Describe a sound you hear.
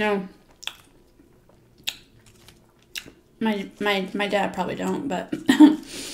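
Potato chips rustle and crackle as fingers pick through them.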